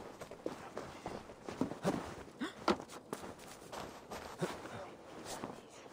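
A person clambers up a wooden wall.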